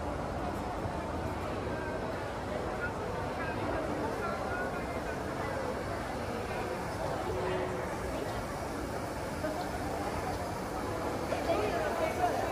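Many people murmur and chat in a large echoing hall.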